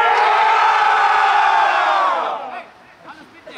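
A group of young men shout together loudly outdoors.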